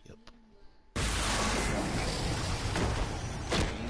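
A weapon strikes flesh with a wet splatter.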